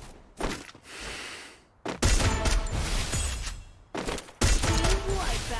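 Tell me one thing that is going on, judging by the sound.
Gunshots crack in loud, quick bursts.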